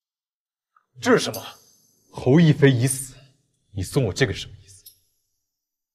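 A young man asks a question calmly, close by.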